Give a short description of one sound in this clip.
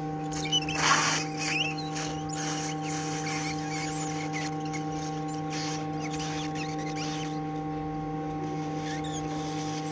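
A hot air blower hisses steadily.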